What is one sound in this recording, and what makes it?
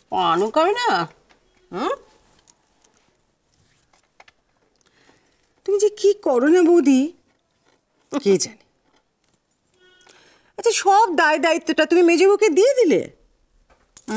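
A middle-aged woman speaks close by with feeling.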